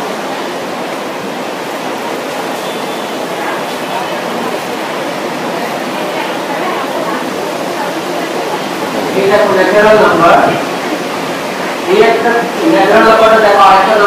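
Many young people murmur and chatter quietly in a large room.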